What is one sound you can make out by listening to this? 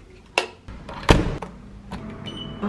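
An elevator button clicks as it is pressed.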